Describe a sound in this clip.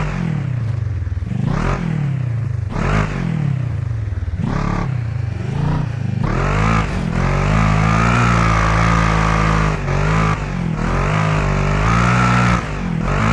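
An engine revs hard, rising and falling in pitch.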